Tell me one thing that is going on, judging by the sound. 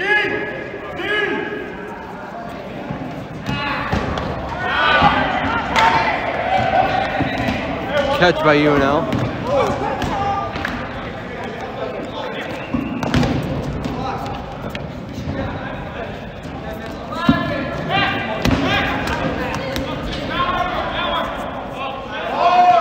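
Rubber balls bounce and smack against the floor and players.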